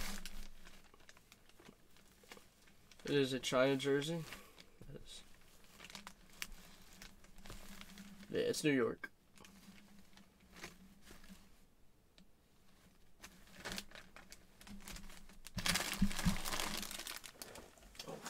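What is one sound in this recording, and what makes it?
Fabric rustles as a jersey is handled.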